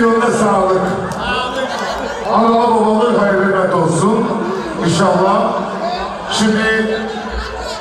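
A man shouts excitedly close by.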